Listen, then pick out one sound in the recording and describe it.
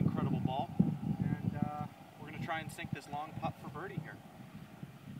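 A man talks casually outdoors.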